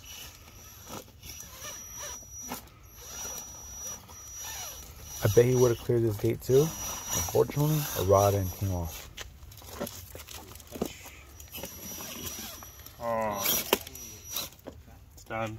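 A radio-controlled rock crawler's electric motor whines.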